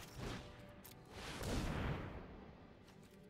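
A magical whoosh sweeps across.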